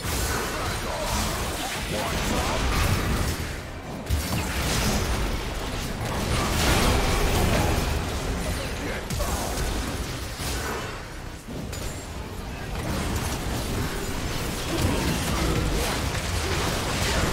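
Magic spells whoosh and blast in a fast battle.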